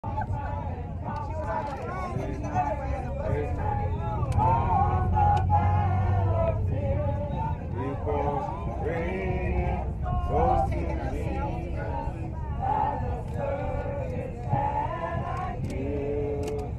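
Many men and women talk and chatter at once, close by.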